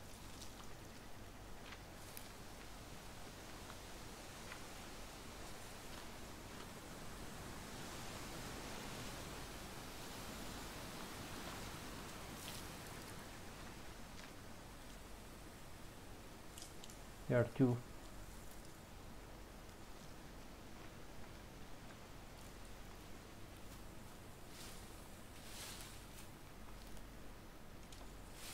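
Wind blows softly through trees.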